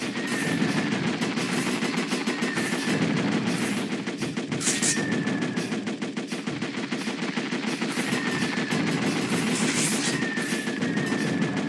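A rapid-fire gun rattles steadily.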